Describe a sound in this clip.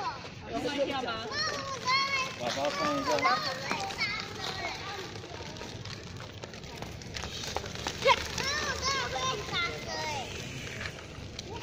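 Small bicycle wheels roll over paving stones.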